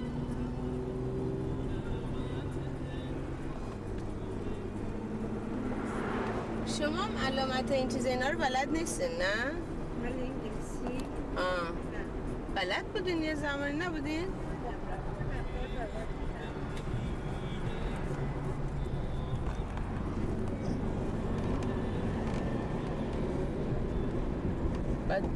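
A car engine hums and tyres rumble on the road, heard from inside the car.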